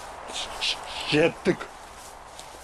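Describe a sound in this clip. A middle-aged man answers briefly nearby.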